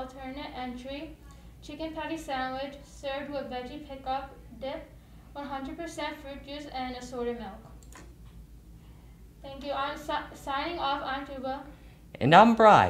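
A young woman reads out calmly through a microphone.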